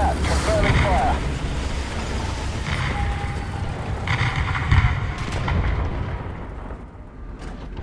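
A tank engine rumbles and clanks.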